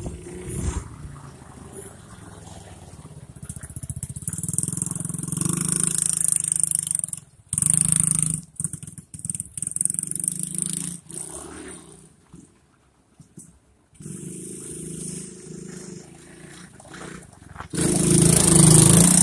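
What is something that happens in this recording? A small quad bike engine buzzes and revs, passing close and then moving away before returning.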